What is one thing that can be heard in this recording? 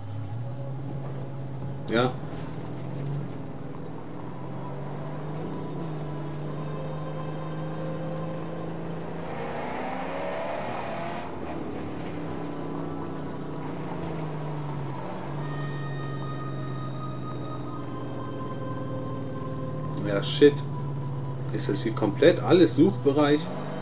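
A car engine roars steadily, rising and falling in pitch as it speeds along.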